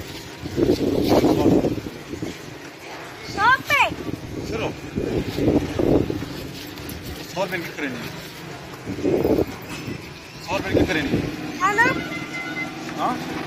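A young girl talks close by.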